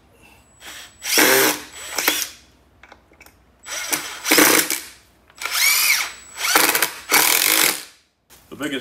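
A cordless drill whirs in bursts as it drives screws into wood.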